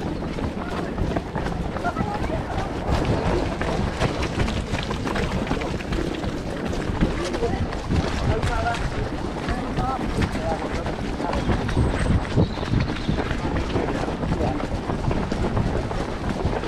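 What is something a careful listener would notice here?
Many running feet thud and scuff on a path close by.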